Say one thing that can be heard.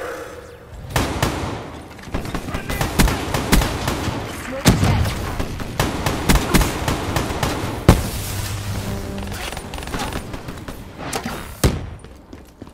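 Gunfire rattles in rapid bursts.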